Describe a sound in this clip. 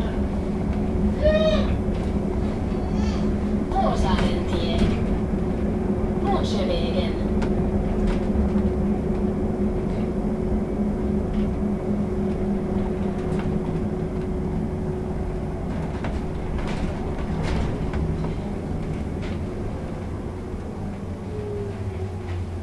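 An electric city bus hums as it drives along, heard from inside.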